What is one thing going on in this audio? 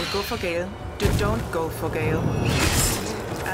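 A magical explosion bursts with a roar.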